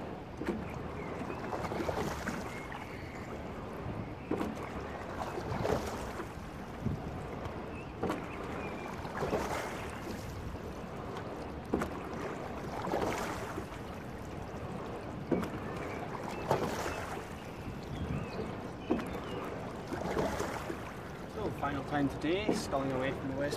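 Oars splash and swish through water in a steady rowing rhythm.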